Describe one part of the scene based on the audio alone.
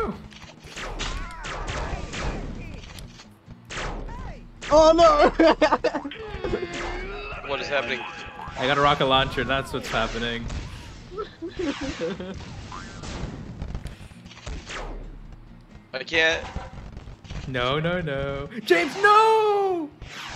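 A cartoon blaster fires in quick bursts.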